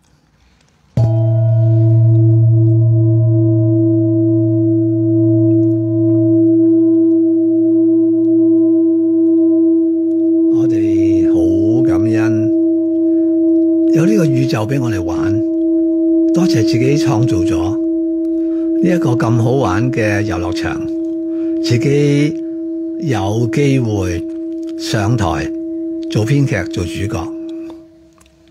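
A singing bowl is struck and rings with a long, steady hum.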